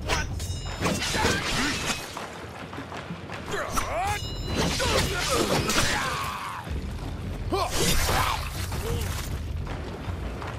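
Swords clash and ring in quick bursts.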